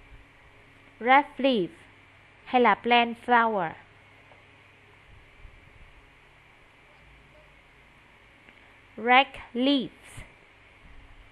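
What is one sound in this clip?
A woman speaks in short phrases through an online call.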